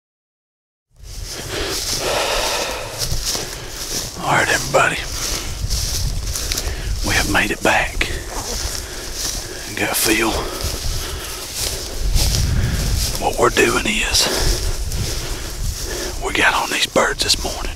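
A young man speaks quietly, close to the microphone.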